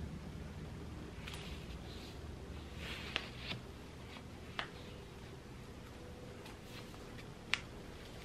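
Hands rustle hair and a wig cap.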